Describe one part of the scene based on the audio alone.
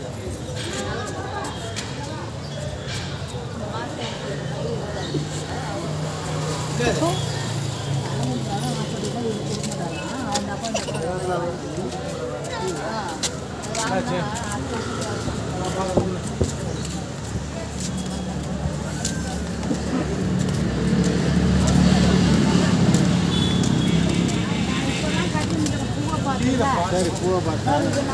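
A busy outdoor street hums with traffic.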